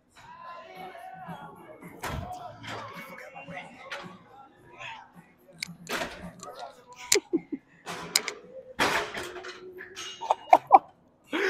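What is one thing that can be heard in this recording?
Weight plates on an exercise machine clank and knock.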